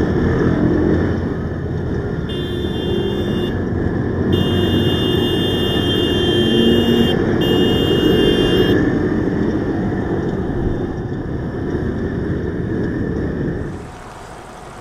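Scooter engines rumble and drone in busy traffic close by.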